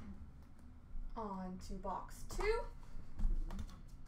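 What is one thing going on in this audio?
A small box is set down on a shelf with a light knock.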